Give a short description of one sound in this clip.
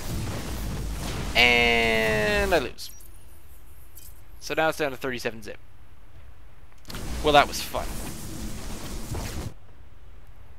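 Laser beams zap and hum.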